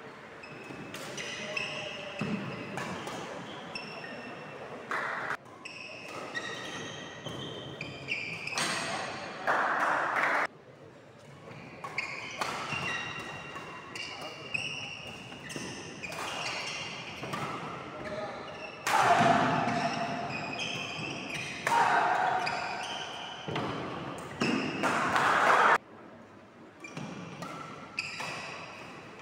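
Rackets strike a shuttlecock with sharp pops, echoing in a large hall.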